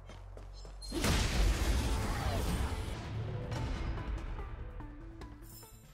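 A sharp slash strikes, followed by a loud whooshing rush that slowly fades.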